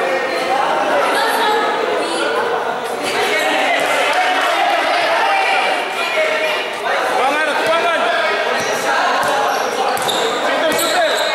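A crowd of spectators chatters and shouts in an echoing open hall.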